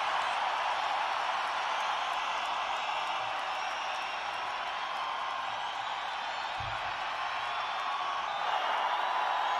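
A large crowd cheers and screams in a big echoing hall.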